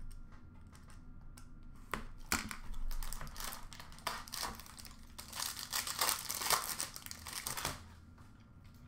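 Plastic packaging crinkles and rustles close by.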